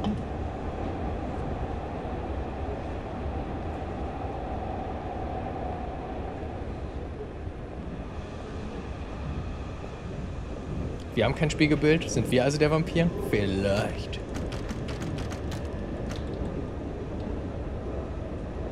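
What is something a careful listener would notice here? A train rumbles low and steadily.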